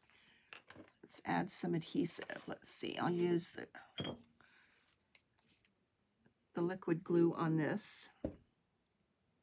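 A middle-aged woman talks calmly and closely into a microphone.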